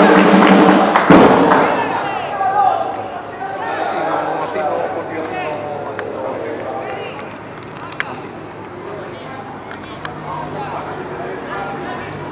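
Young men shout and call out across an open outdoor field.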